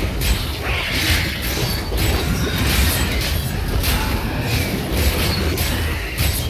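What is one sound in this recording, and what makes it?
Magic blasts and sword hits crackle and burst in a fast fight.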